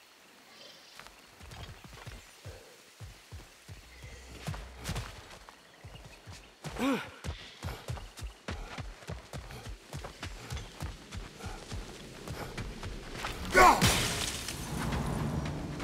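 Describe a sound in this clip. Heavy footsteps crunch over rocky ground.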